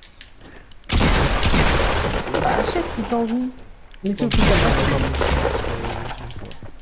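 Gunshots ring out in rapid bursts.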